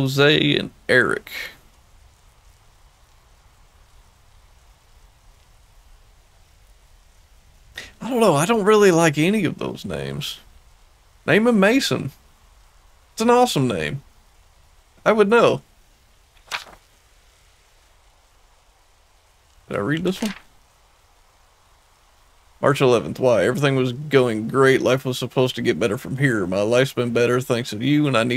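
A man speaks close to a microphone in short bursts with pauses.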